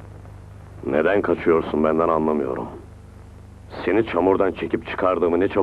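A man speaks sternly close by.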